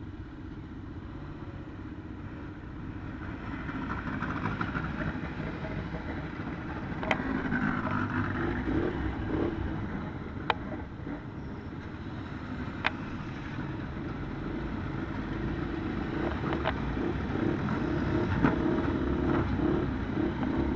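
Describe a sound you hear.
Quad bike engines idle and rev close by.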